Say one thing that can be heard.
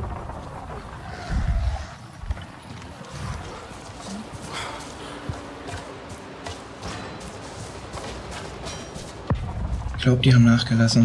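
Footsteps crunch over dry leaves and undergrowth.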